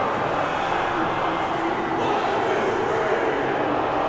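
A large crowd cheers loudly in a stadium.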